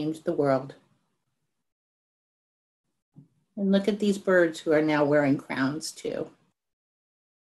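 An elderly woman reads aloud expressively into a microphone over an online call.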